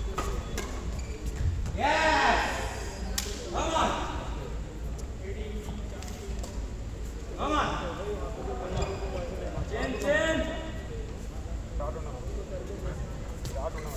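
Badminton rackets strike a shuttlecock.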